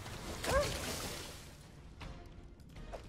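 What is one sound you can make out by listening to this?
Magic spell effects whoosh and crackle in a video game.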